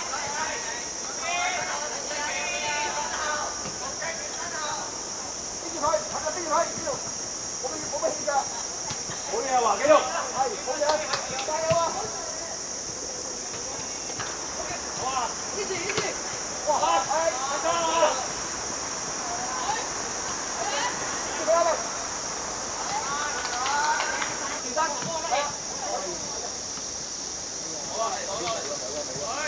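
Young boys shout and call out to each other across an open pitch.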